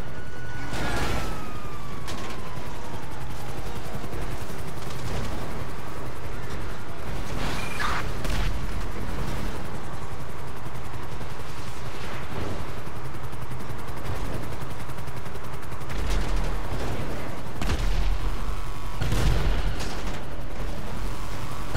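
A heavy tank engine rumbles steadily.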